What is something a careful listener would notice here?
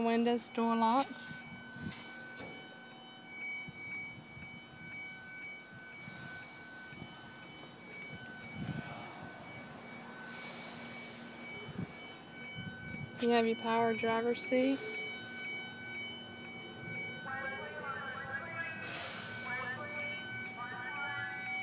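A car's open-door chime beeps steadily.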